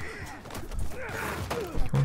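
Fists thud in a brawl.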